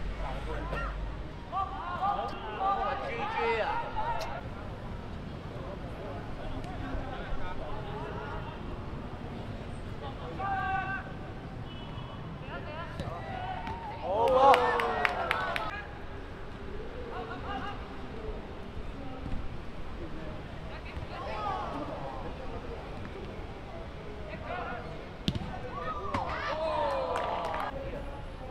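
Young players shout to each other across an open outdoor pitch.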